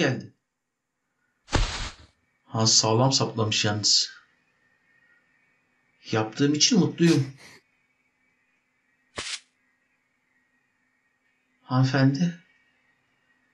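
A middle-aged man speaks in short bursts close to a microphone.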